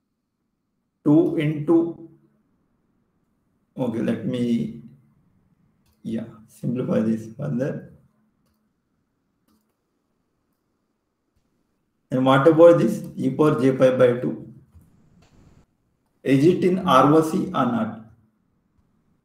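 A young man speaks calmly in short phrases through an online call, with pauses between them.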